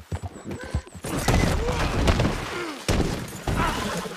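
A horse crashes and tumbles down a rocky slope.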